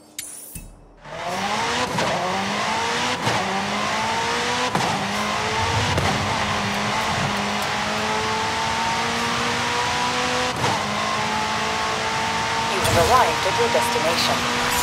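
A sports car engine roars as it accelerates hard, its pitch climbing and dropping with each gear change.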